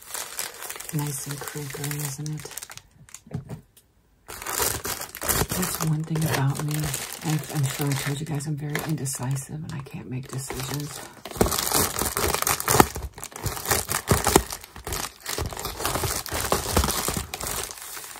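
A plastic mailer crinkles in handling.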